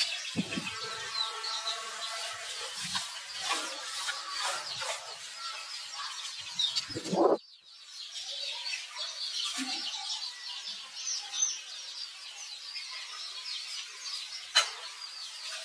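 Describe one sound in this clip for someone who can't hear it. A baby monkey squeals and cries in high, shaky calls.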